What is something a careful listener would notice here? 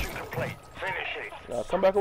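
A rifle fires.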